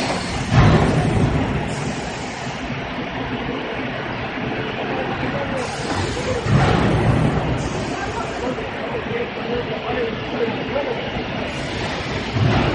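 Factory machines hum and rattle steadily nearby.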